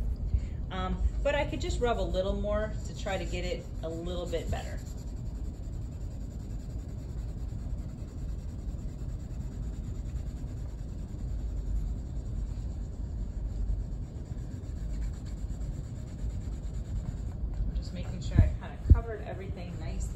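Hands rub and smooth a sheet of paper with a soft, steady swishing.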